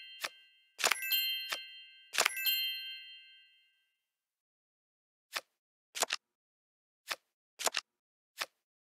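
Playing cards make short clicking sounds as they are moved.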